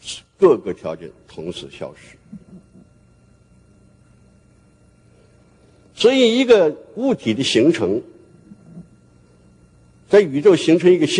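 An elderly man speaks slowly and deliberately through a microphone, with long pauses.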